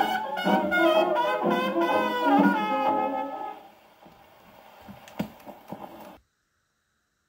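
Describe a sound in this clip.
A gramophone needle crackles and clicks on the record's surface.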